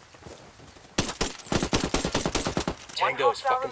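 A gun fires a rapid burst of loud shots.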